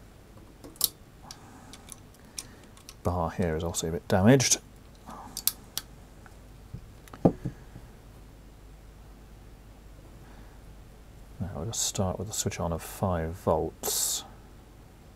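A small metal mechanism clicks and snaps as it is worked by hand.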